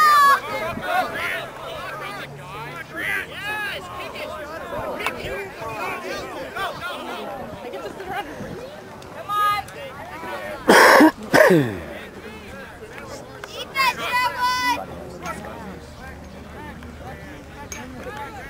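A crowd of spectators chatters and calls out outdoors.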